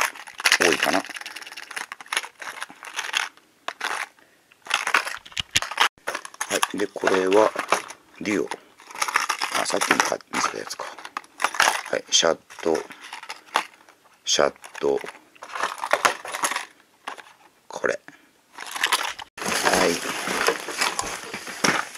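Plastic packages crinkle and rattle as hands handle them.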